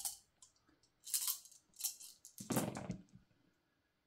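Dice clatter across a tabletop.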